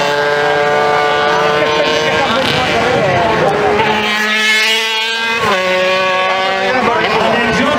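A sport motorcycle engine revs hard, rising and falling in pitch.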